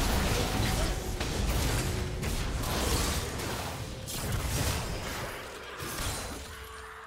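Spell effects crackle and burst during a fight.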